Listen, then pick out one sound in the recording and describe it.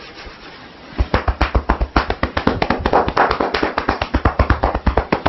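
Fingertips tap quickly and steadily on a head close by.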